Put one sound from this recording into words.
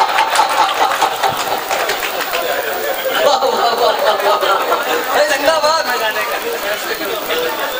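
A crowd of men laughs.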